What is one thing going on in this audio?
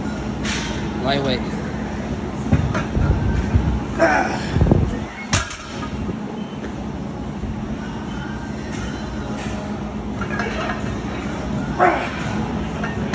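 A young man grunts with effort.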